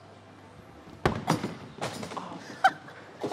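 Bowling balls thud onto a wooden lane.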